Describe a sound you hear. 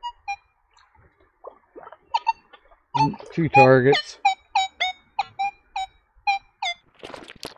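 A metal detector beeps in short, sharp chirps.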